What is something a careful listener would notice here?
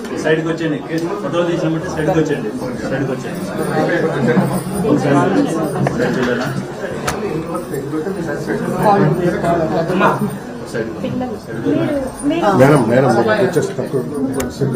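Several women talk over one another close by.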